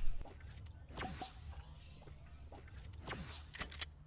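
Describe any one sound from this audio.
A shimmering, rising chime rings out in a video game.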